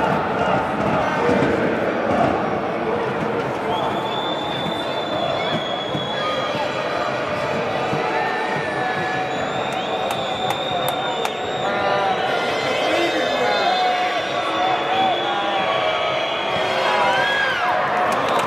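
A stadium crowd murmurs and chatters throughout.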